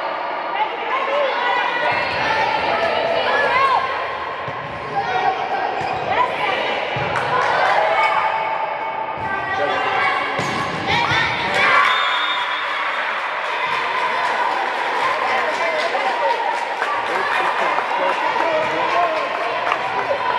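Young women call out and shout to each other during play.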